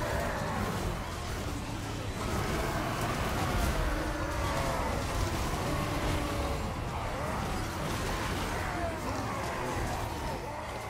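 Many creatures shriek and roar at once.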